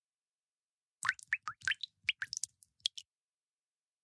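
Quick sparkling chimes tinkle rapidly.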